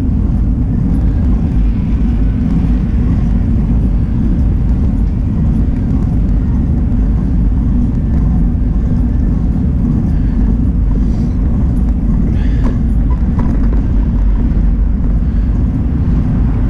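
Wind rumbles and buffets loudly outdoors while riding.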